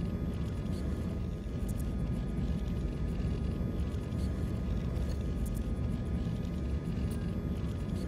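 A deep, rumbling space drone hums steadily.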